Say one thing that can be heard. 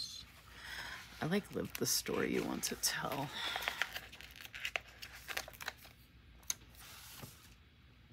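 A sticker peels off a backing sheet with a soft tearing sound.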